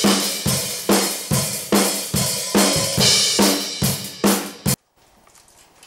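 Drums and cymbals are played loudly up close.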